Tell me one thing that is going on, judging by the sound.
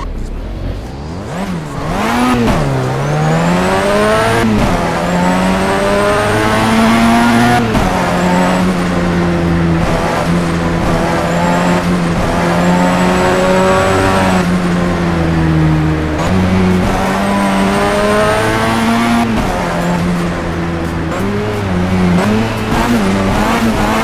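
A car engine revs hard and whines through gear changes.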